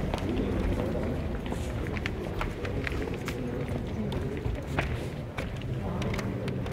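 Footsteps click and echo in a large hall.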